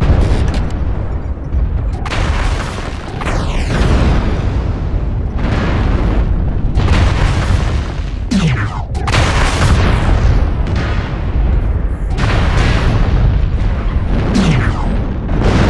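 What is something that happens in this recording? Laser weapons fire in loud, rushing bursts.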